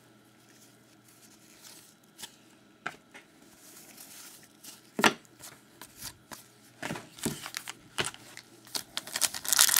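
Gloved hands shuffle and handle trading cards with soft taps and slides.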